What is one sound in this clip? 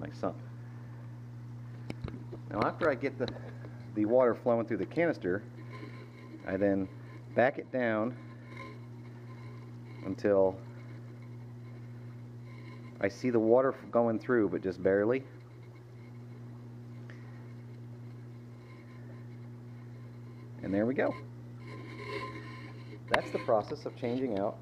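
A water pump hums steadily.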